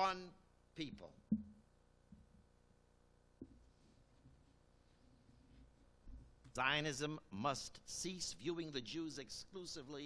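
An elderly man speaks calmly into a microphone, heard through a loudspeaker in a large room.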